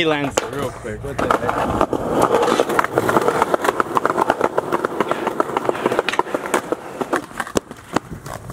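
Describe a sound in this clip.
Skateboard wheels roll and clatter over pavement.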